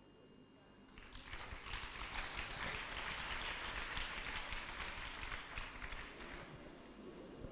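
A crowd claps their hands.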